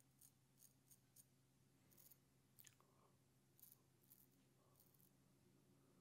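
A razor scrapes softly through stubble in short strokes.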